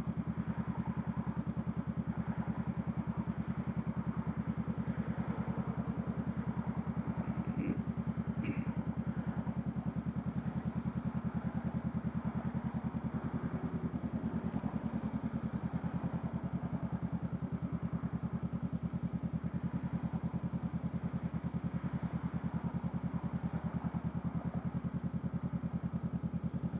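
A parallel-twin motorcycle engine idles close by with a throbbing rumble.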